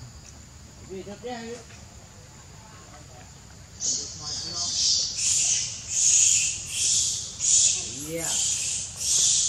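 A baby monkey squeaks nearby.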